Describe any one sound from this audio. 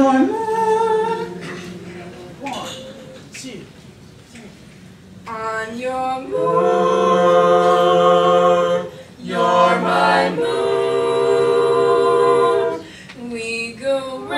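A small group of men and women sings together from close by, holding long notes.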